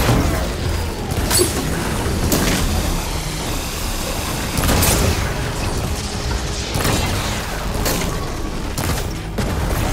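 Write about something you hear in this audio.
A bowstring twangs as arrows fly.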